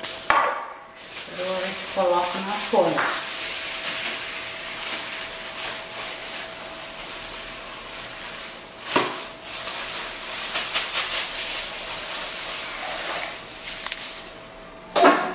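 Plastic sheeting crinkles and rustles.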